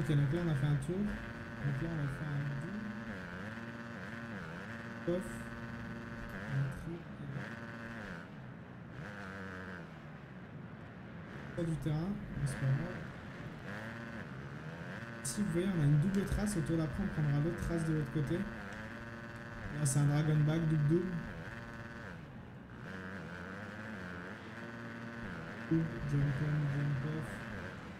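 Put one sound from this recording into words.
A motorbike engine revs up and down steadily.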